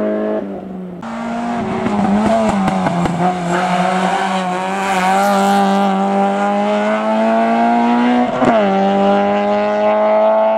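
A third rally car engine revs and roars past, shifting gears.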